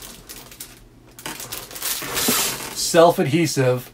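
A man rummages through a cardboard box.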